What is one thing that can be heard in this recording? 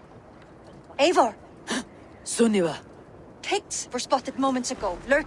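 A woman speaks in a low, tense voice, close by.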